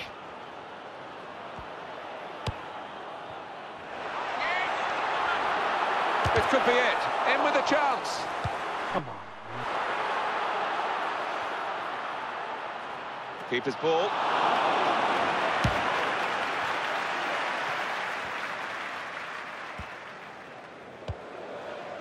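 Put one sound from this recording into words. A large stadium crowd roars and cheers, swelling and fading.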